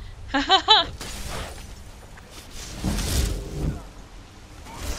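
A magic spell hums and crackles with a rushing whoosh.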